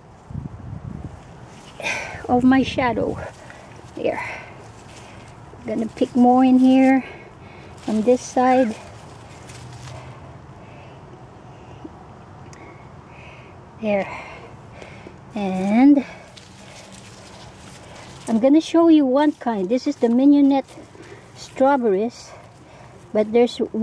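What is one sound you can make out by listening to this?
Leaves rustle as a hand pushes through the plants.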